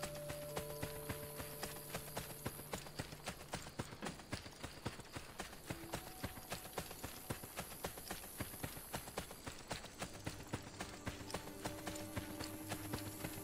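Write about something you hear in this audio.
Quick footsteps run over soft grass.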